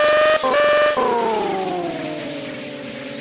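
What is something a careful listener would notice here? A car engine winds down as the car slows.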